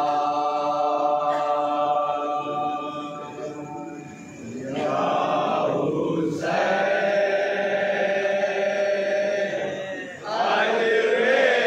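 A man chants a mournful lament loudly into a microphone.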